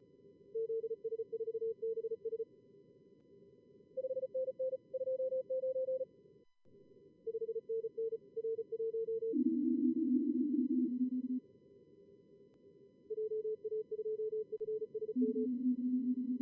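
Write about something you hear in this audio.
Morse code beeps in quick bursts at a steady pitch.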